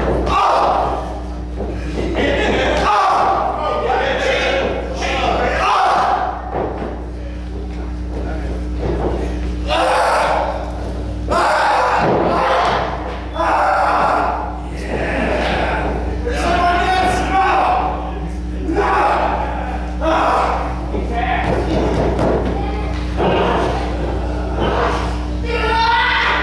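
A man shouts loudly nearby in an echoing hall.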